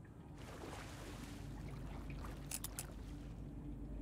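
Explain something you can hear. A combination padlock's dials click as they turn.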